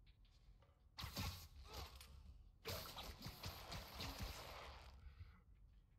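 A web line zips and whooshes through the air.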